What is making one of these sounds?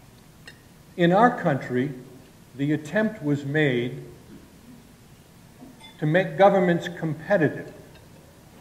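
An elderly man speaks calmly and close by, in short phrases with pauses.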